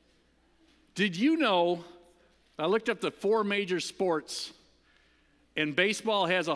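A middle-aged man speaks with animation through a microphone in a large room.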